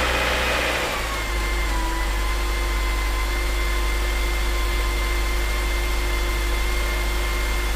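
A car engine idles steadily and loudly.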